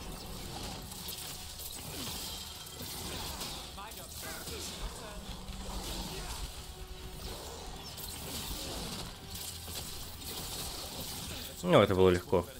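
Magic blasts crackle and whoosh in a fight.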